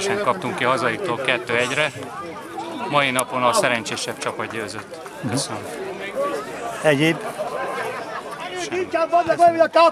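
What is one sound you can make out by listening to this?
A middle-aged man talks calmly and close by, outdoors.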